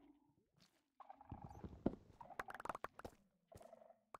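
Repeated wooden knocks sound as an axe chops at a block of wood.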